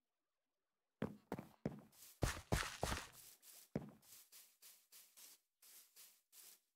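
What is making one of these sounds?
Footsteps tread steadily over grass.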